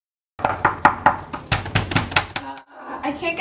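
A fist knocks on a door.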